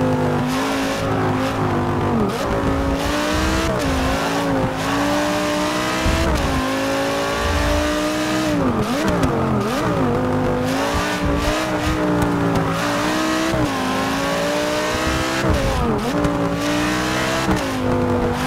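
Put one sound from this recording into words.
A racing car engine roars, revving up and down as gears shift.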